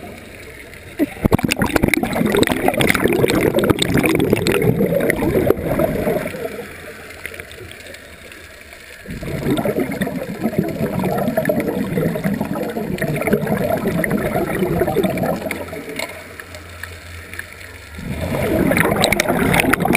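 Air bubbles from a diver's regulator burble and rumble in loud bursts underwater.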